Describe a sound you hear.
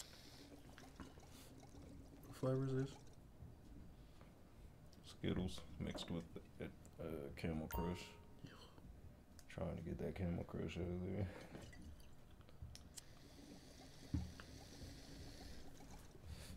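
A man gulps from a bottle.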